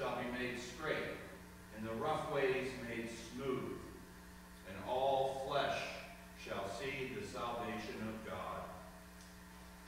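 A man speaks calmly through a microphone in a large echoing room.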